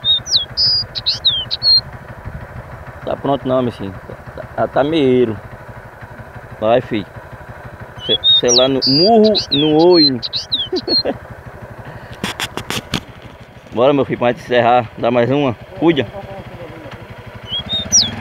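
Small birds chirp in short, high, sliding whistles.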